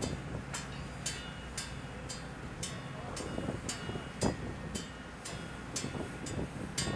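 Wind blows steadily outdoors by the sea.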